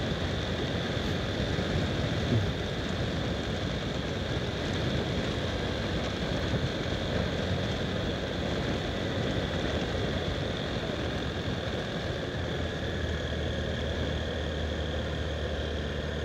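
Tyres rumble steadily over a rough dirt road.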